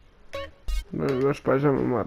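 Soft music starts playing.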